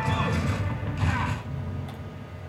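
Gunfire bursts out in short rapid shots.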